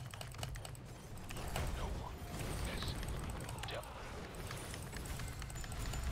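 Game battle effects crackle and blast in quick bursts.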